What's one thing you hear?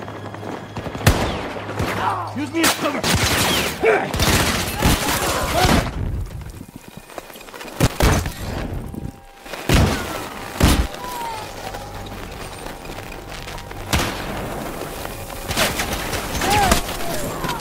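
Gunshots crack in sharp, loud bursts.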